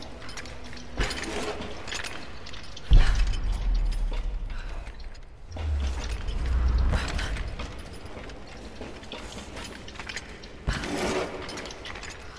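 A metal cage clanks and rattles under heavy footsteps.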